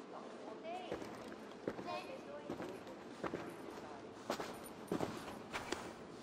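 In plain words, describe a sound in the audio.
Boots step on a stone floor.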